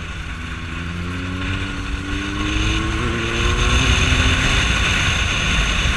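Wind rushes past loudly as the motorcycle speeds up.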